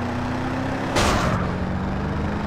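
A car crashes into another car with a loud bang.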